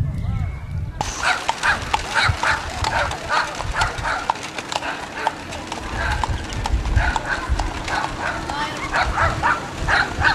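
Horse hooves clop on a paved road.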